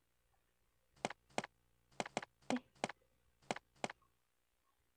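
Footsteps thud slowly on a hard floor.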